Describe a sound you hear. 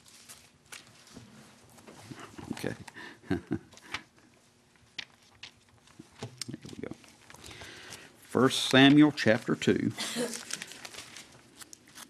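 Pages rustle as a man turns them.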